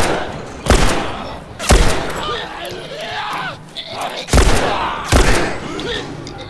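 A pistol fires loud gunshots that echo.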